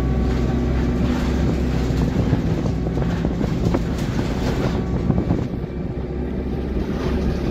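A bus engine rumbles steadily while the bus drives along.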